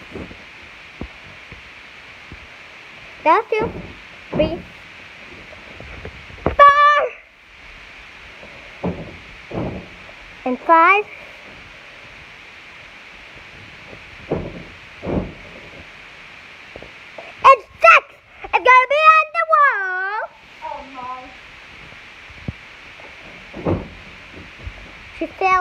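A young child bounces and thumps on a soft mattress.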